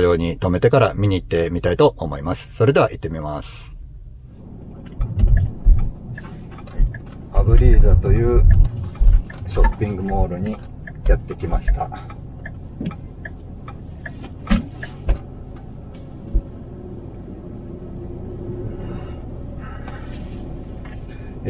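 A car engine hums steadily as the car drives on a road.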